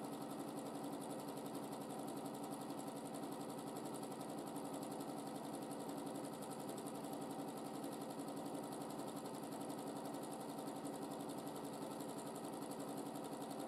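A sewing machine hums and its needle taps rapidly and steadily.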